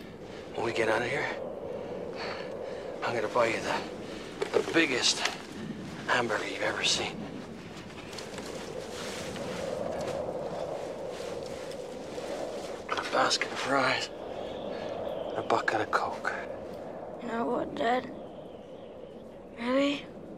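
A middle-aged man speaks close by in short bursts.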